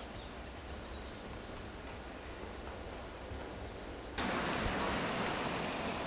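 A car engine hums as a car drives slowly past.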